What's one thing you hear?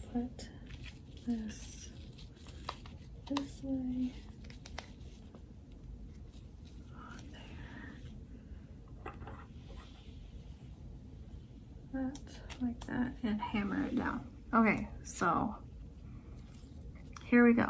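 Fabric and paper rustle and crinkle in hands close by.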